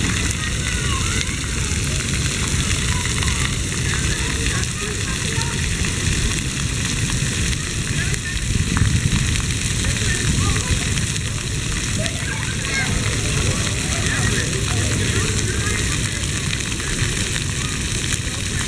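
Water fountains spray and splash steadily outdoors.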